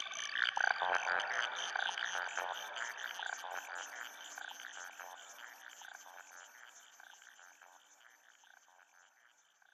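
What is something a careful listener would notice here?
Electronic synthesizer music plays with quick, bright plucked notes that slowly fade away.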